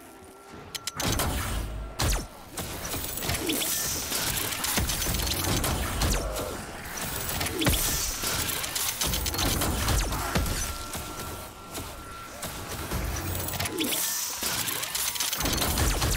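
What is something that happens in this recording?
Explosions burst and rumble.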